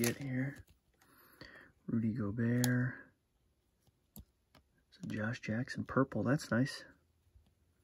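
Trading cards slide and shuffle against each other.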